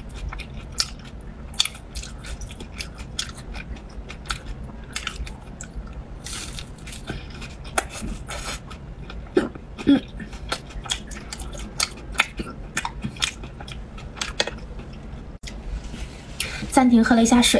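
A young woman chews food close to a microphone, with wet, crunchy mouth sounds.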